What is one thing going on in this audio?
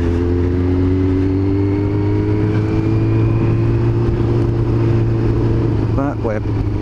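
A motorcycle engine hums steadily at cruising speed.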